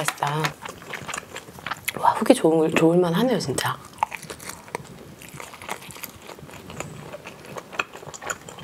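A young woman crunches and chews food close to a microphone.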